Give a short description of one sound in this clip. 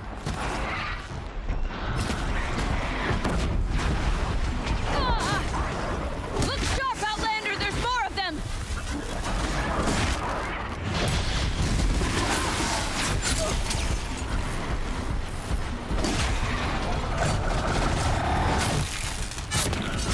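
Machines roar and screech in battle.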